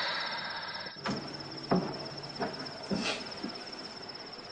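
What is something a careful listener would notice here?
Bedding thumps softly as it is set down on a mattress.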